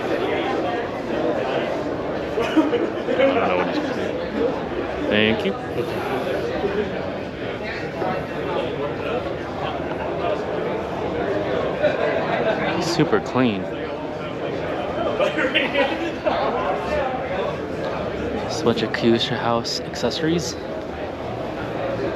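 A crowd of people chatters all around in a large hall.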